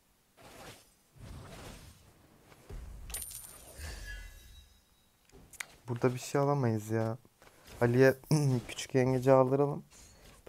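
Magic spell effects whoosh and crackle in short bursts.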